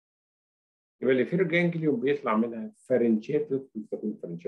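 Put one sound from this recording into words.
A man lectures calmly through a microphone in an online call.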